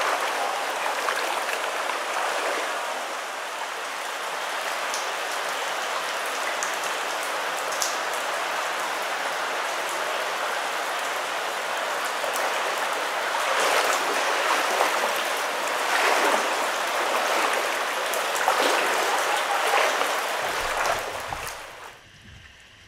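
A shallow creek ripples over stones.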